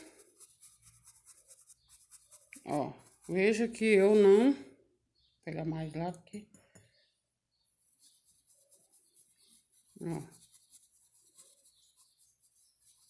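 A paintbrush softly brushes across cloth.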